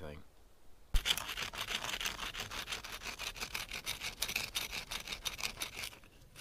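A hand rustles and crunches dry pine needles and leaves.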